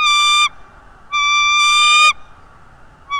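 A bird gives loud, high, piping whistled calls close by.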